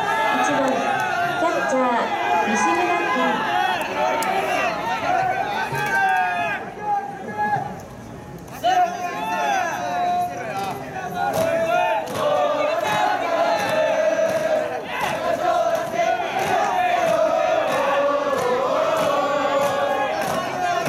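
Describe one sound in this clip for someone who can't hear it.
Young male baseball players call out to each other across an open field.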